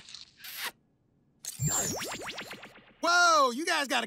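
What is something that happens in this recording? A young man speaks with excitement in a cartoon voice.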